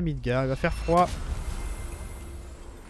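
A magical gateway whooshes and shimmers as it opens.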